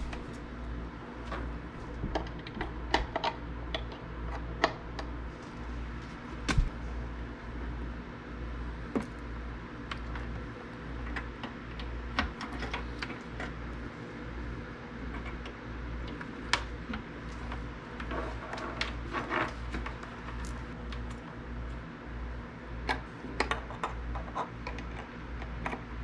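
Cable plugs click and scrape into sockets.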